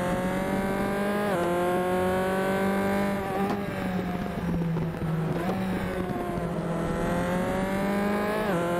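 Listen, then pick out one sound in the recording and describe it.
A racing car engine whines loudly, rising in pitch and dropping sharply at each gear shift.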